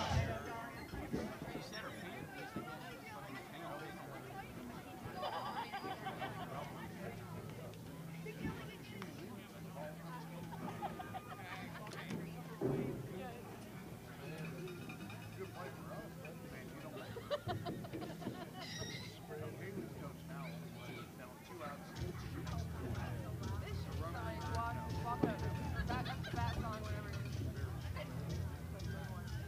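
Young women call and cheer across an open field outdoors.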